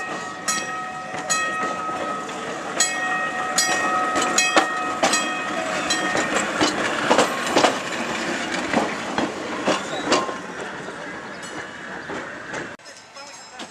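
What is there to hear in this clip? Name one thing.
A streetcar rumbles and squeals past on its rails.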